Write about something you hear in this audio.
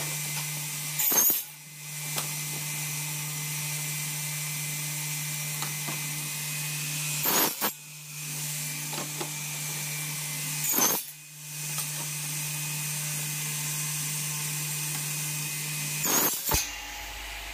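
A saw blade whines as it cuts through plastic in short, loud bursts.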